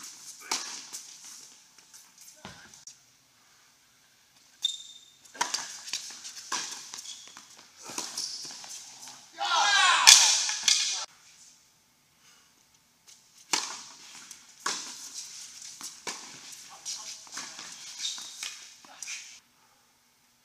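Tennis balls are struck with rackets, echoing in a large indoor hall.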